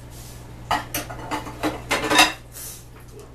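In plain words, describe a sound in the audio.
Dishes clatter in a sink.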